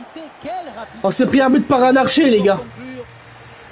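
A young man shouts loudly into a close microphone.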